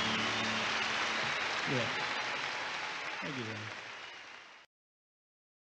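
A large crowd cheers and applauds loudly, then cuts off abruptly.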